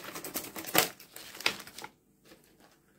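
Scissors snip through a plastic bag.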